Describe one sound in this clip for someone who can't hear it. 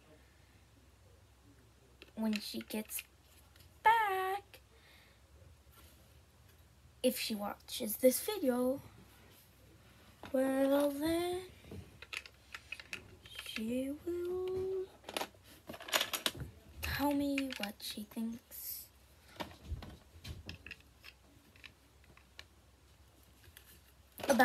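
Plastic toy bricks click and rattle in a child's hands.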